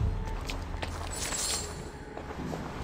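Coins clink and jingle briefly.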